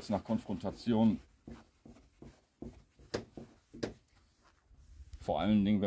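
A cloth rubs against a metal panel.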